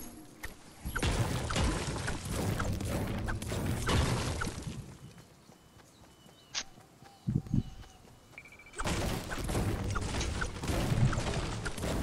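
A pickaxe strikes rock and wood again and again.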